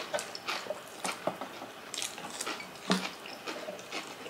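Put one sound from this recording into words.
Crisp vegetables crunch as they are bitten.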